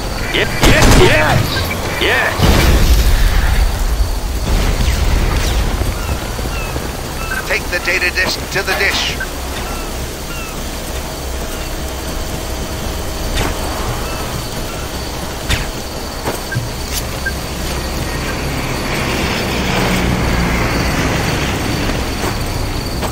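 Wind gusts and howls.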